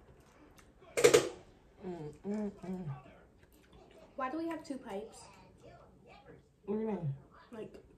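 A woman chews and crunches on toast.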